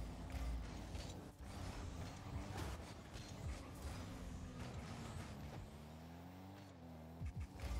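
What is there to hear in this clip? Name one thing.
A video game car engine hums and boosts.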